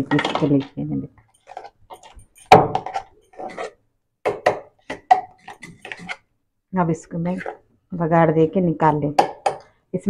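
A spoon scrapes and stirs thick paste in a metal pot.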